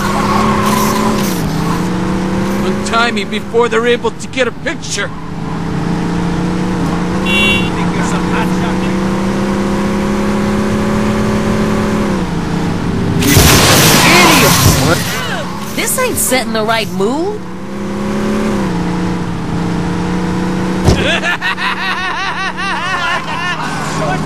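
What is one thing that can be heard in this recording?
A car engine hums steadily and revs as the car speeds along.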